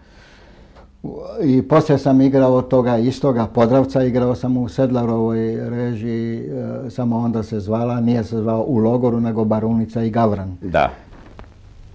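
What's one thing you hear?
An elderly man talks with animation, close by.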